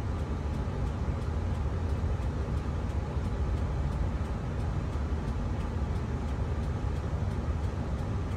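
Traffic passes outside.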